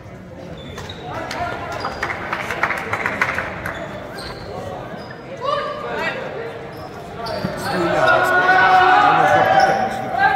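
Young men shout and chant together in a large echoing hall.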